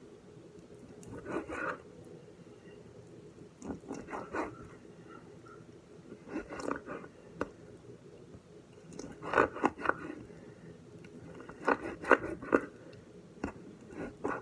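A knife chops on a wooden cutting board.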